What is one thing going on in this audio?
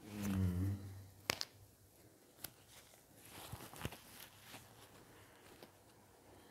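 A face mask rustles against a microphone.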